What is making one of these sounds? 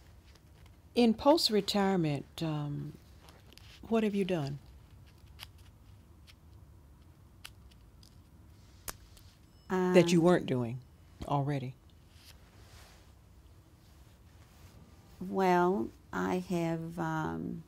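An elderly woman speaks calmly and close to a microphone, in short bursts with pauses.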